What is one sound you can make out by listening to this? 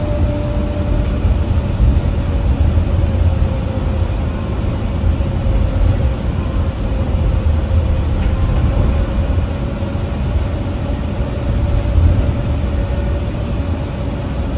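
A bus engine rumbles low and steady while driving.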